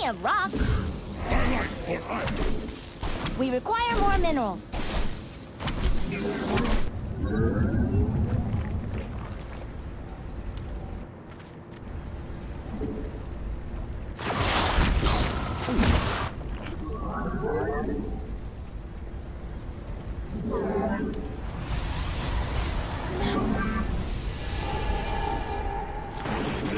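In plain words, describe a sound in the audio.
Electronic game sound effects chime and whoosh.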